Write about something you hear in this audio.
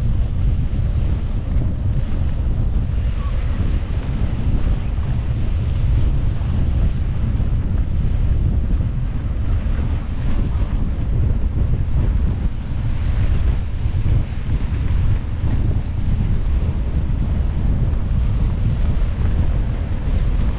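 Wind rushes and buffets loudly past a moving bicycle.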